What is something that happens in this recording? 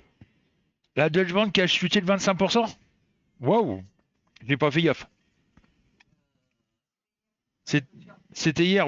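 A middle-aged man speaks with animation into a headset microphone, close up, in short bursts.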